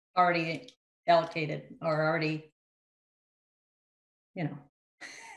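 A middle-aged woman speaks calmly into a microphone, heard as if over an online call.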